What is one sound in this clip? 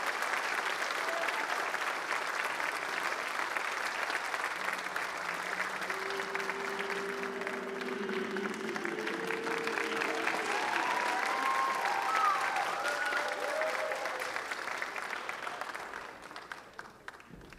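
Young men clap their hands in a large hall, and the clapping fades out.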